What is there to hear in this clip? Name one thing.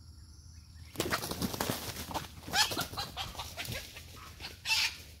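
A rooster scurries off through dry leaves and grass with a loud rustle.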